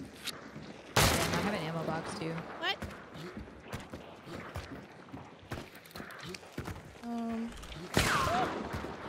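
Gunshots crack loudly.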